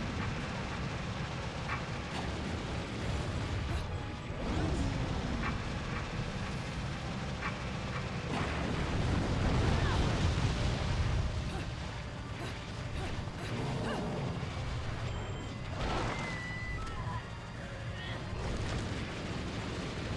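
Blades clang and slash in quick strikes.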